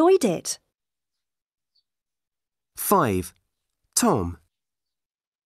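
A young man speaks in short phrases over an online call.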